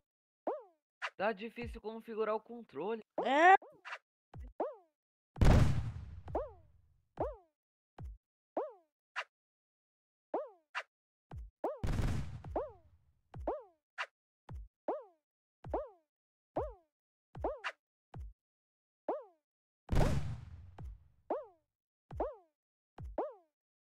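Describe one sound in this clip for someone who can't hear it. Short, bouncy cartoon jump sounds come again and again from a game.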